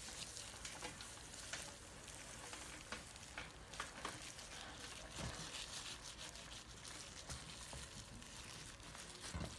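Fingers rub and crinkle a dry, papery snakeskin up close.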